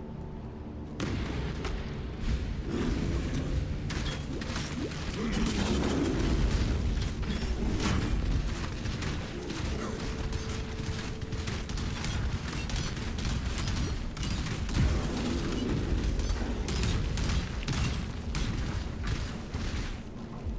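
Weapon blows thud and clatter rapidly.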